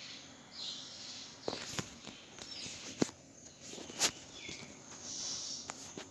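A phone is knocked and rustles as it is handled close to the microphone.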